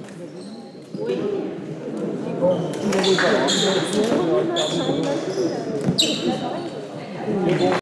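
A crowd of young men chatter and shout with animation in an echoing hall.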